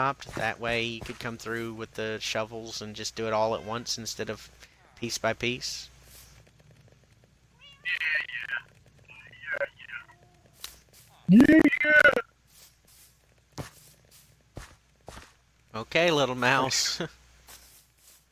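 Footsteps tread softly on grass and dirt.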